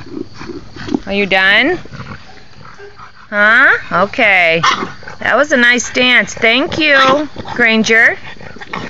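A small dog yelps and howls in loud, high bursts.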